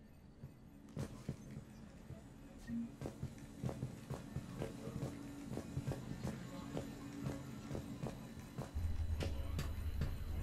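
Footsteps tap on a hard floor at a steady walking pace.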